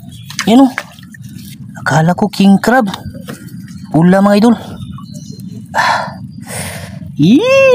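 A hand rustles and scrapes through dry wood chips and soil.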